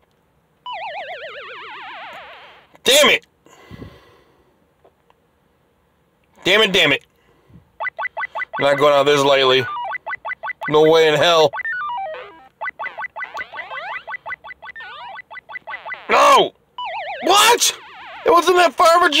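Chiptune game music and beeping sound effects play.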